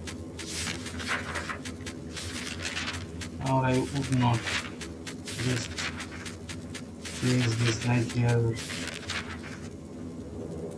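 Pages of a book rustle as they are turned.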